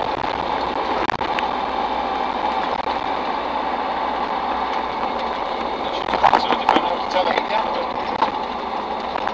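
A vehicle's cab rattles and clatters on the road.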